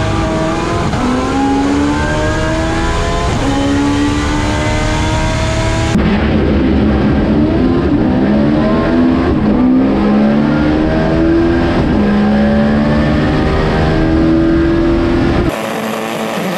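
A racing engine roars loudly from inside the car, climbing in pitch through one gear after another.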